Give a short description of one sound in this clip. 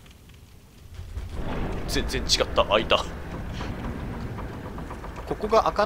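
A heavy wooden door creaks and rumbles slowly open.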